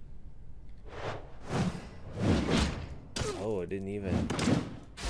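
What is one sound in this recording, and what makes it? Weapon blows strike in a short fight.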